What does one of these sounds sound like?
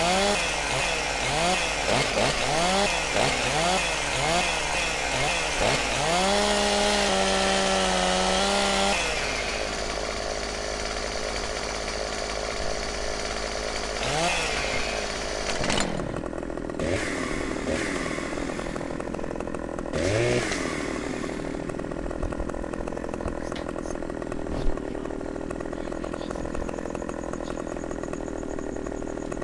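A chainsaw engine runs loudly, its pitch repeatedly rising and falling.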